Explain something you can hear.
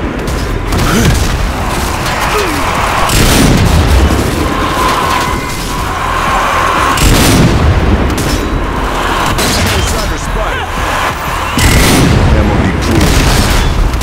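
Explosions burst loudly.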